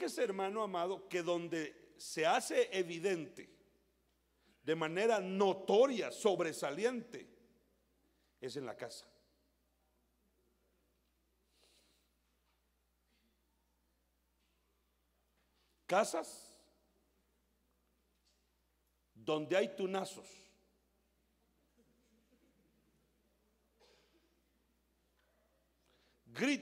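A middle-aged man preaches with animation through a microphone in an echoing hall, pausing often.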